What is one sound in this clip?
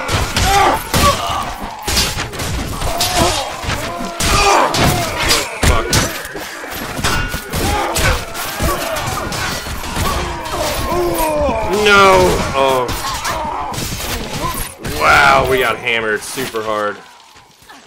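Swords clash and strike armour in a noisy battle.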